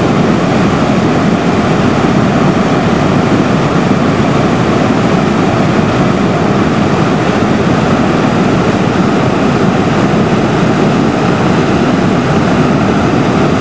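A swollen, muddy river roars as floodwater churns over rocks in heavy rapids.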